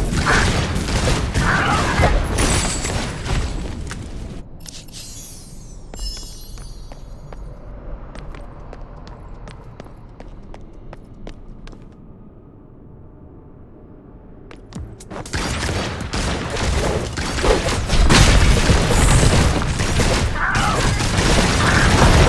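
Flames roar and crackle in a game battle.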